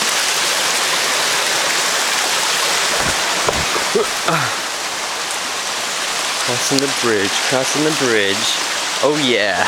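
A stream splashes and trickles over rocks.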